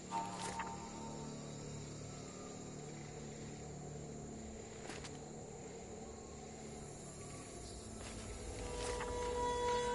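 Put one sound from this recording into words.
Paper pages rustle as a notebook is handled.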